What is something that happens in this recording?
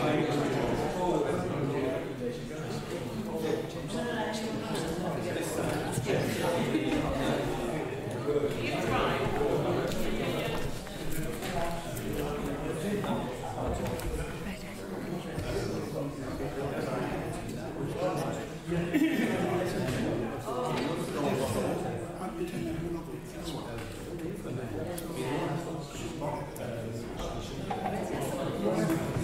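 Several men talk over one another in a room that echoes a little.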